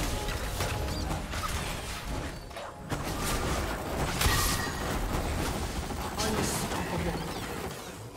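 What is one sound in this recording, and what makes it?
Magic spell effects whoosh and crash in quick bursts during a fight.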